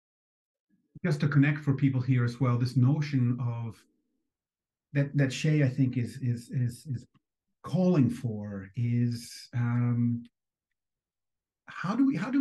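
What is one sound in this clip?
An older man speaks calmly, heard over an online call.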